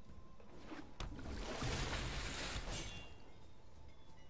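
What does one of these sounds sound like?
A soft magical whoosh swells and fades as a card lands.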